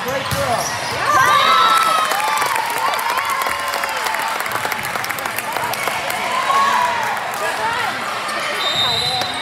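Young women cheer and shout excitedly in an echoing hall.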